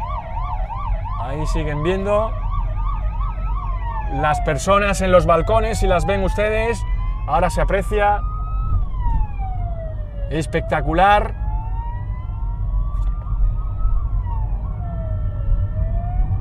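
Police sirens wail nearby, rising and falling in pitch.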